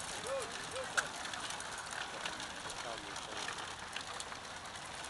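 Bicycles rattle over cobblestones as a pack of riders passes close by.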